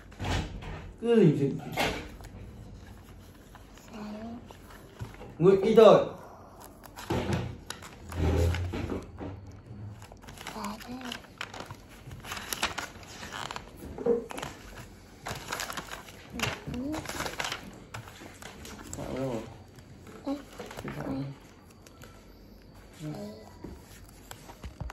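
A young girl talks close by in a calm, chatty voice.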